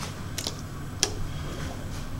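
A button clicks once as it is pressed.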